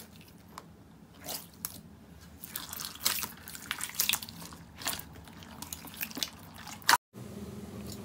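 Hands squish and squelch wet jelly beads in water.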